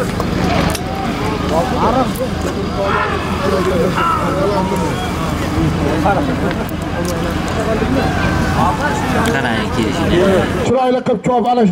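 A large crowd murmurs and shouts outdoors.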